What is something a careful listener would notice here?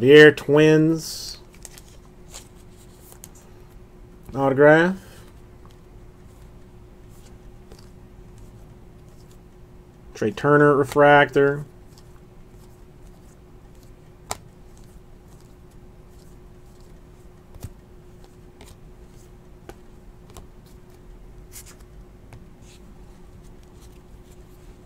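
Trading cards slide and click against each other in a hand.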